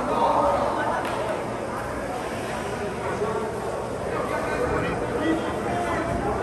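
Young players call out to each other in a large echoing arena.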